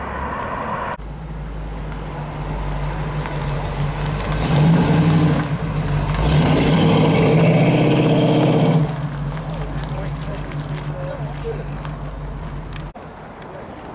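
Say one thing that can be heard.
A classic muscle car's engine rumbles as the car drives past, swelling under throttle.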